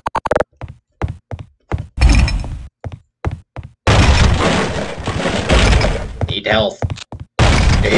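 A metal bar strikes a wooden crate with dull knocks.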